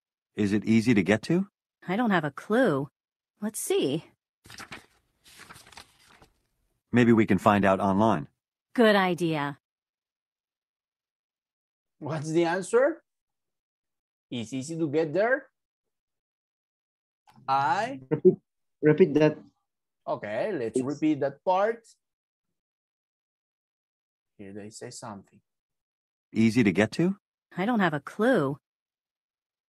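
A man speaks clearly over an online call in short phrases with pauses.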